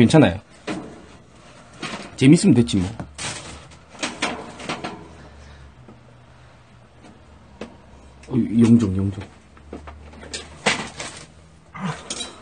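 Objects clatter and rustle as someone rummages close by.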